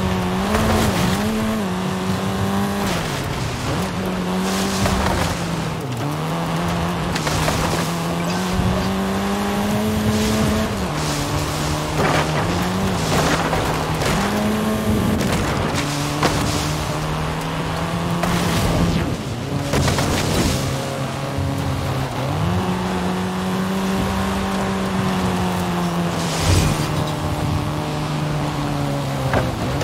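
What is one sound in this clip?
Tyres rumble over rough ground.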